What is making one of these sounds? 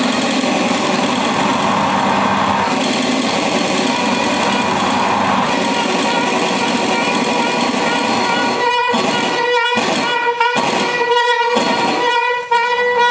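Dense electronic noise hisses and crackles loudly.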